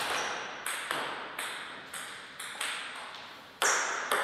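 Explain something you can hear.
A table tennis ball bounces on a table tennis table in an echoing hall.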